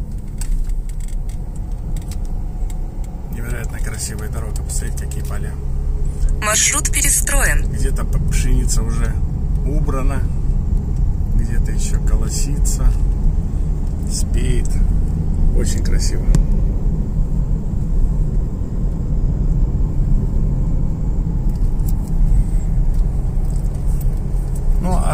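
A car engine hums steadily.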